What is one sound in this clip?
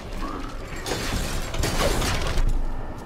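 A blade strikes metal with a sharp clang.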